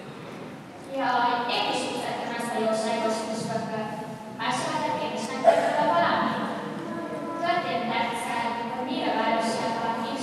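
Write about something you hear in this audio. A young girl speaks clearly through a microphone.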